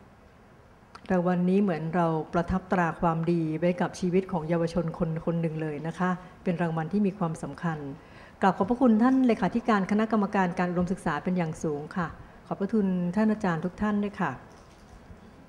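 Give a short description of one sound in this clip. A woman announces over a loudspeaker in a large hall.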